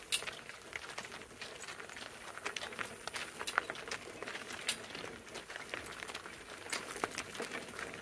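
A cart rolls over crunching gravel.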